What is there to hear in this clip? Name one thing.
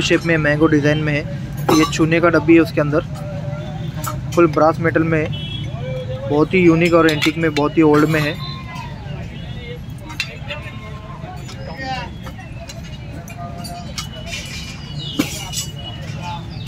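A small hinged metal lid clicks open and shut.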